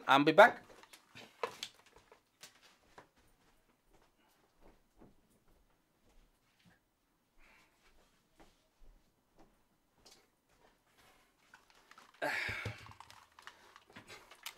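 Clothing rustles as a man moves past a microphone.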